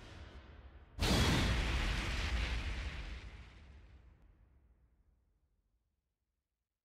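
A loud fiery blast booms and slowly fades away.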